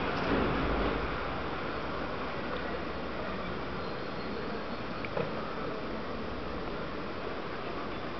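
A dog pants close by.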